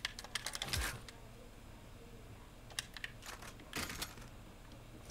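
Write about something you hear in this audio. Short game sound effects click and clatter as items are picked up.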